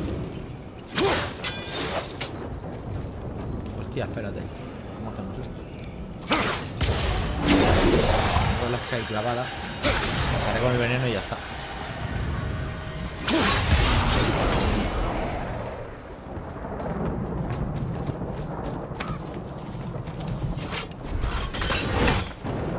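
Game weapons swing and strike with sharp impacts.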